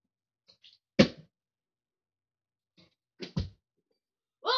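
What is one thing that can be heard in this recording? A boy knocks on a wall with his fist.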